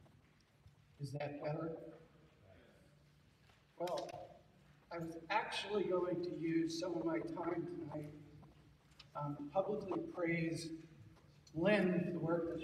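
A man speaks over a microphone and loudspeakers in a large echoing hall.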